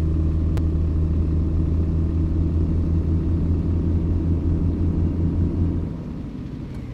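A simulated diesel truck engine hums while the truck cruises.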